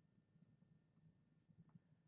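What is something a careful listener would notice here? A fingertip rubs softly across paper.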